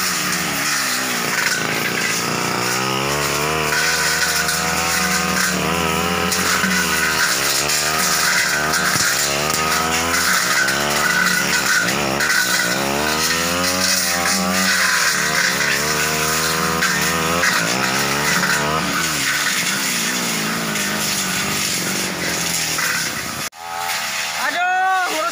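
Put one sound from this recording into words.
A brush cutter engine drones loudly, revving up and down.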